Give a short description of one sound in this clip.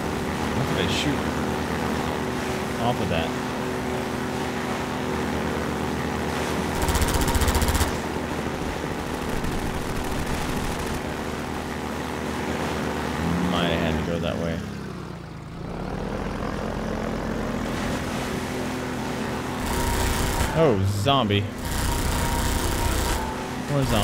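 An engine drones steadily throughout.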